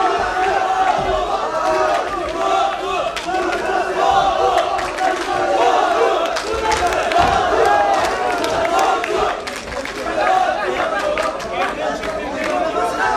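A crowd of men shout and cheer loudly in a large hall.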